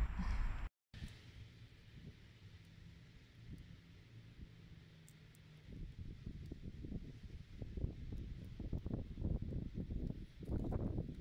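A vinyl sticker peels off glass with a soft crackle.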